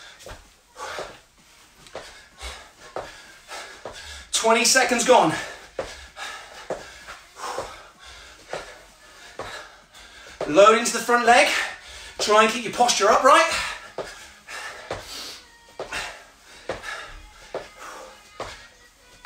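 Feet thump and shuffle on a wooden floor.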